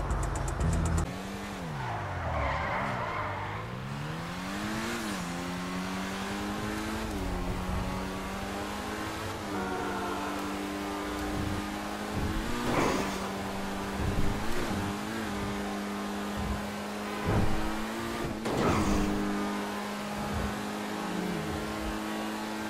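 A car engine revs up and down, then hums steadily at speed.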